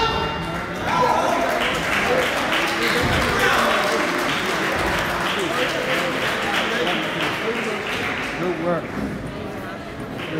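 A crowd cheers and claps.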